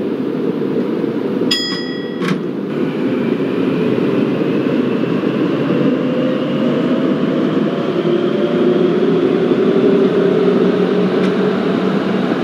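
A train rumbles steadily along rails through an echoing tunnel.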